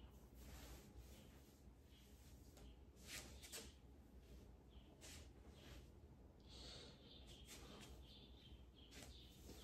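Clothing rustles softly.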